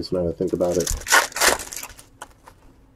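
A foil wrapper crinkles and rustles in close hands.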